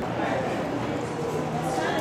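A crowd of young people chatters nearby.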